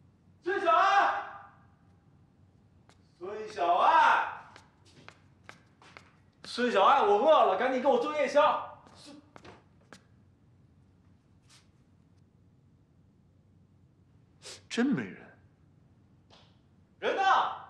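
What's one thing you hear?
A young man calls out loudly, close by.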